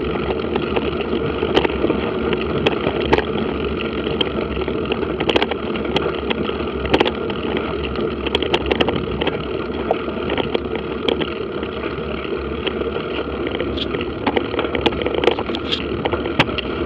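Tyres roll and crunch over a rough dirt track, with frequent small knocks.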